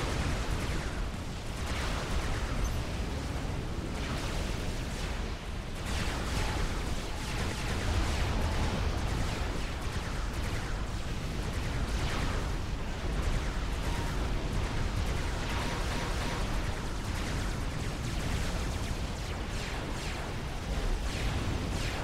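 Weapons fire and explosions boom again and again.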